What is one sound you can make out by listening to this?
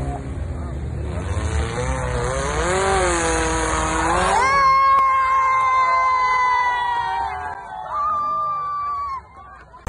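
An engine revs hard and roars.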